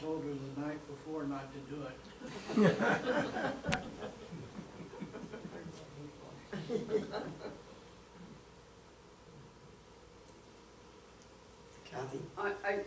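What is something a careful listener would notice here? A young man speaks to a room, with pauses.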